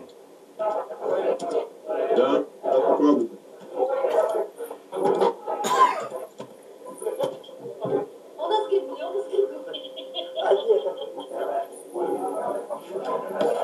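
A man talks with animation, heard through a loudspeaker.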